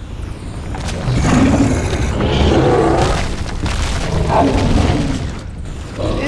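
A huge monster roars and growls deeply.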